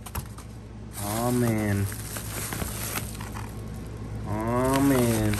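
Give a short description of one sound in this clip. Bubble wrap rustles as it is lifted.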